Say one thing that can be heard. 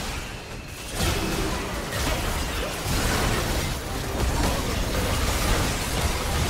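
Spell blasts and clashing blows of a fight burst out in quick succession.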